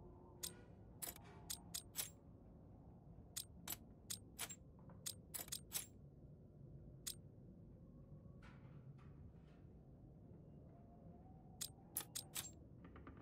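Metal cylinders click sharply as they turn into place.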